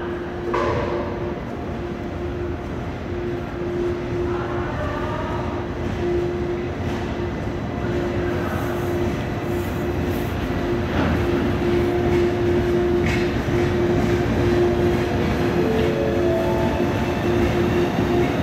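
A train rumbles slowly into the station, its wheels clattering on the rails.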